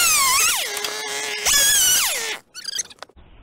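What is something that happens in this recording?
A chainsaw engine revs up and down loudly close by.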